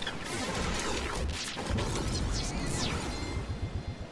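A glider snaps open with a whoosh.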